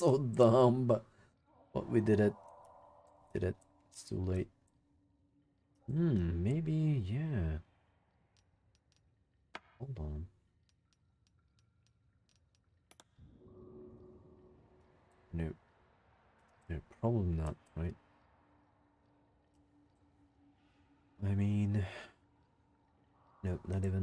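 A man talks calmly into a close microphone in short bursts.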